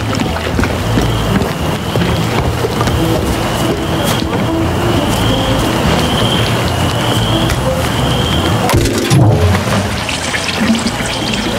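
Footsteps thud on wooden steps and then on dirt.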